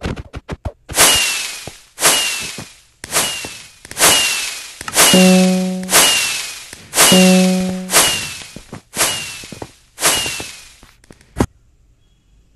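Fireworks burst with a whoosh, one after another.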